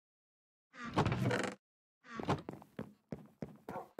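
A wooden chest thumps shut.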